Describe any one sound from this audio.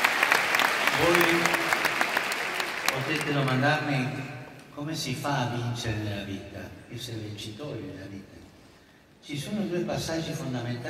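A man speaks over loudspeakers in a big echoing hall.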